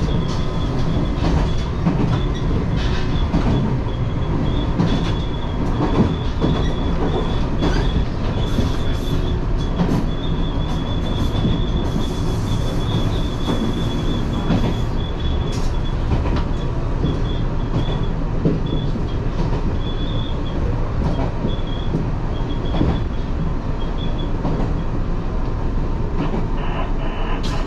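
Train wheels click and clack over rail joints.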